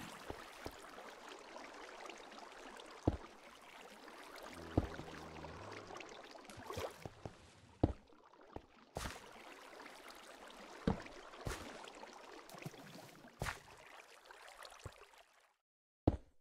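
Water flows and splashes steadily.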